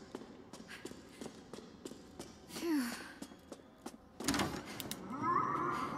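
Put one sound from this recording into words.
Footsteps tread on a hard floor at a steady walking pace.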